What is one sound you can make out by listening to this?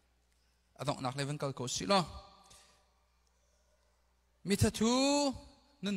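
A man speaks earnestly into a microphone in a large room with a light echo.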